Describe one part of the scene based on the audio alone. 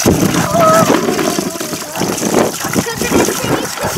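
Water splashes over a woman's hands under a running spout.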